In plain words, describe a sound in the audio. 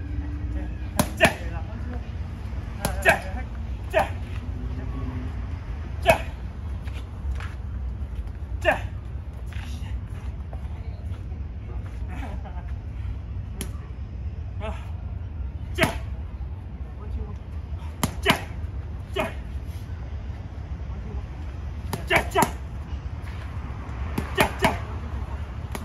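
Gloved punches smack sharply against padded mitts in quick bursts.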